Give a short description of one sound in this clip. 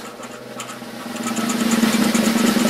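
A metal key scrapes rapidly across a scratch card.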